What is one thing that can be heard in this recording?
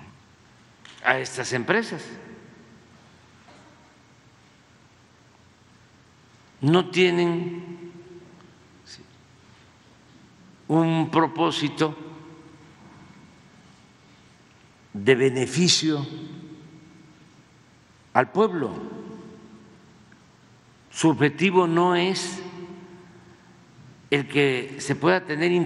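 An elderly man speaks slowly through a microphone in short bursts with long pauses, his voice echoing in a large hall.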